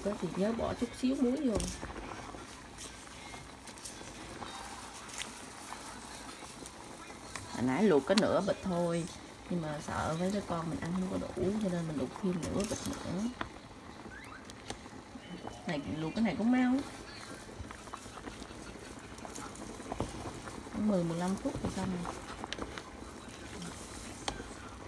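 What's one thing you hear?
A wooden spoon stirs noodles in a pot of water.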